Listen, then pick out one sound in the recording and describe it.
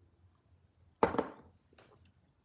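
A man sips loudly from a cup.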